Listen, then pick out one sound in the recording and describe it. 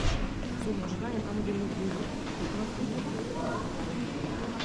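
A woman talks nearby in an echoing hall.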